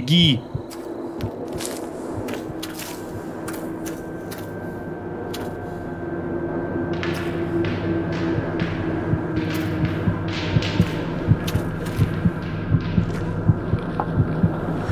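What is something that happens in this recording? Footsteps crunch and thud along a rocky path and over wooden planks.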